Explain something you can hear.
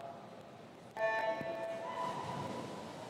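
A starting signal beeps sharply.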